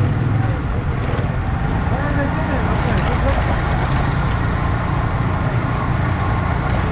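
A crowd of men and women chatter in a busy street nearby.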